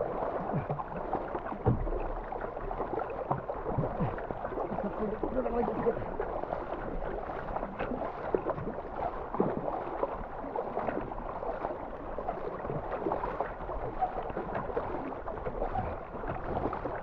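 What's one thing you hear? A kayak paddle splashes into the water with each stroke.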